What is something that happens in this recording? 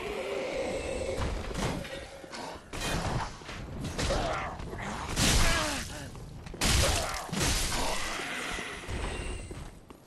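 Swords clash and strike hard in a fight.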